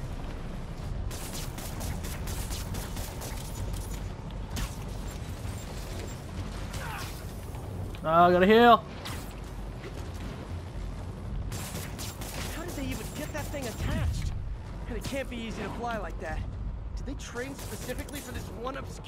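Electricity crackles and zaps in sharp bursts.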